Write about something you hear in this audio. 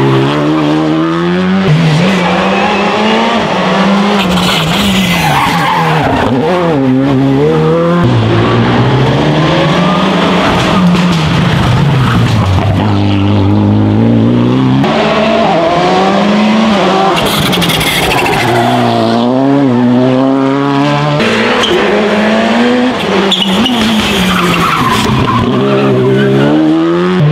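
Rally car engines roar and rev hard as the cars race past close by.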